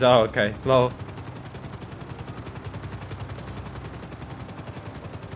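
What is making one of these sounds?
A helicopter's rotor thuds in a fast, steady beat.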